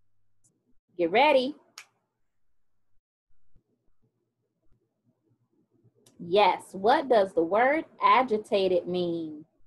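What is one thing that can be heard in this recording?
A young woman speaks brightly and cheerfully into a nearby microphone.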